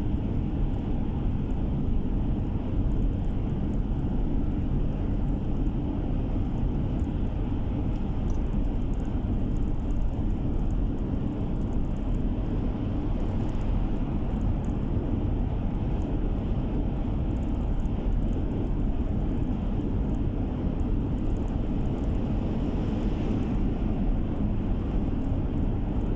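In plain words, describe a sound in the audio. A car engine hums steadily with a low rumble.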